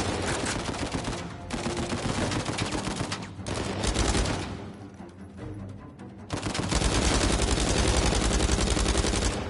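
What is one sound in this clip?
Automatic rifles fire in rapid bursts, echoing in a large hall.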